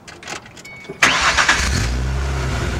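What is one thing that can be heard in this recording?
A car engine starts with a sudden roar.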